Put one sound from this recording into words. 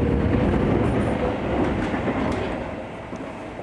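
A passing train rushes by with a loud rumble.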